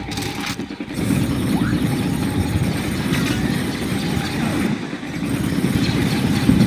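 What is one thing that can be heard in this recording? A metal robot rolls along with a low, rumbling whir.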